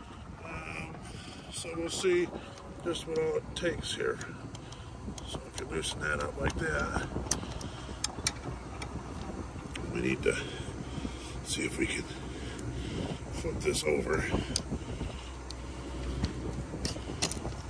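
A screwdriver scrapes and clicks against metal parts.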